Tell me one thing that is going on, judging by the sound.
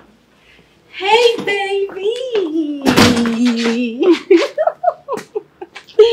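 A young woman squeals and calls out excitedly.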